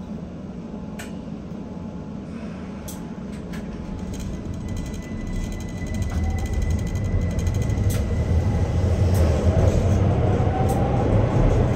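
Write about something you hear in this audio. Wheels click over rail joints.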